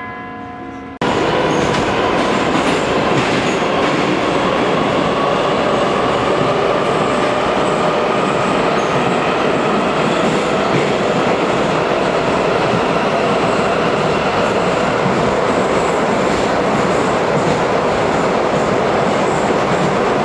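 A metro train rumbles and roars through a tunnel.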